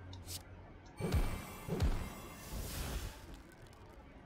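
A sharp whoosh sounds as an attack is played.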